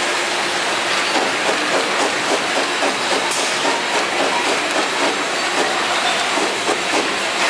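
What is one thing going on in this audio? Plastic bottles rattle and clatter along a conveyor.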